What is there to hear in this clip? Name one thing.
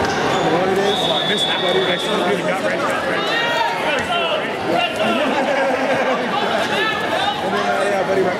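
Sneakers squeak sharply on a mat.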